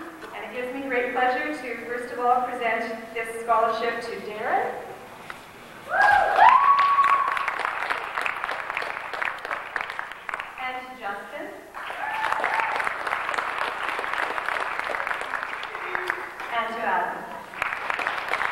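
A woman speaks calmly into a microphone over a loudspeaker in a large hall.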